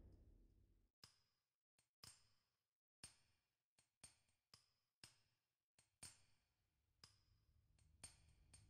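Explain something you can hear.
Short sharp clicks sound now and then.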